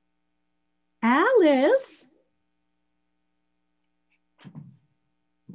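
An older woman exclaims in a high, lilting voice over an online call.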